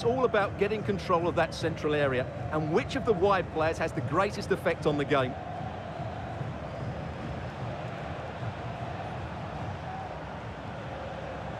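A stadium crowd murmurs and roars steadily in the distance.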